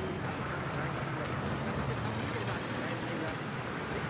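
A car engine hums as it drives past.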